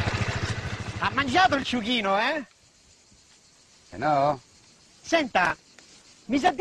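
A man speaks cheerfully up close.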